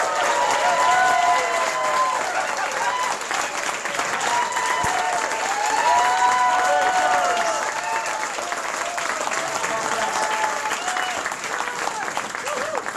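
A man sings loudly into a microphone through a loudspeaker.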